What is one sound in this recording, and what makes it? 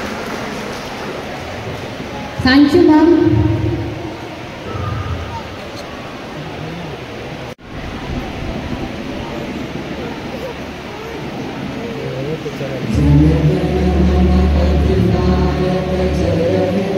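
A large crowd of children and adults murmurs and chatters in an echoing hall.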